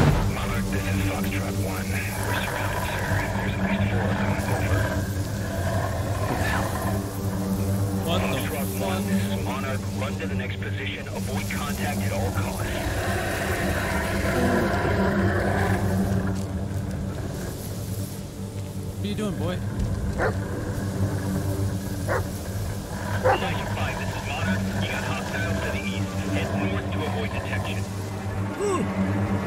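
Footsteps crunch over dry leaves and twigs.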